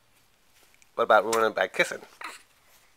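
A baby squeals with excitement.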